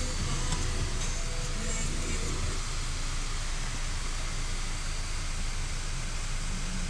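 Road noise rumbles steadily from inside a moving car.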